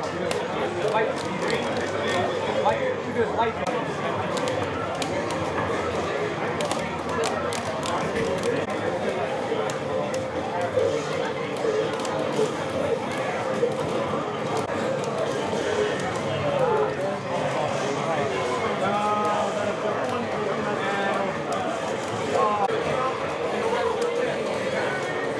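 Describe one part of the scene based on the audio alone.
A crowd of men chatters and murmurs throughout.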